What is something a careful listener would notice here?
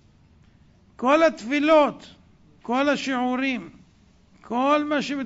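A middle-aged man speaks with animation into microphones.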